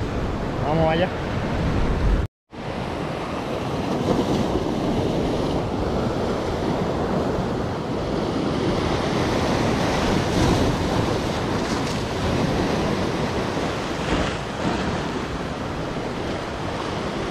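Sea surf crashes and washes over rocks.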